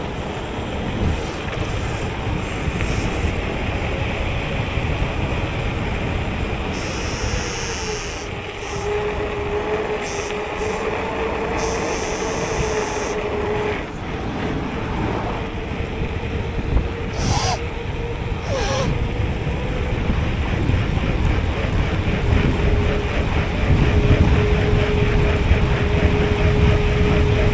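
Wind roars loudly past a fast-moving bicycle.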